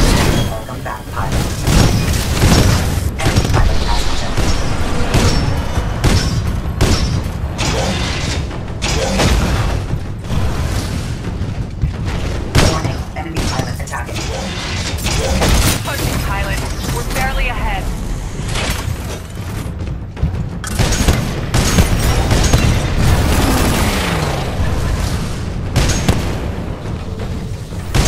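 Heavy gunfire booms in rapid bursts.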